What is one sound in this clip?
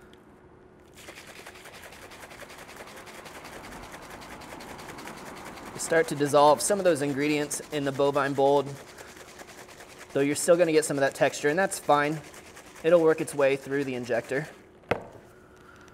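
Liquid sloshes in a shaker as it is shaken hard.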